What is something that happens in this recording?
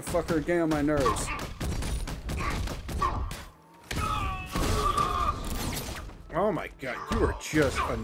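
Heavy blows thud and crack in a brawl.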